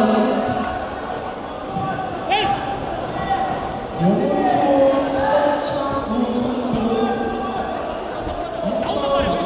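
A crowd of men and women talks and calls out in a large echoing hall.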